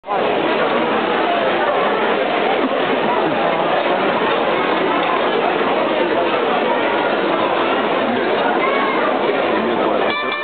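A band of wind instruments plays loudly outdoors.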